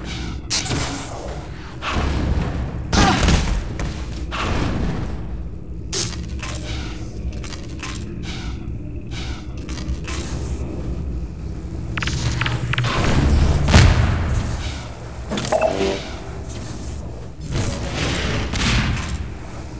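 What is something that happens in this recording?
Footsteps run across hard floors.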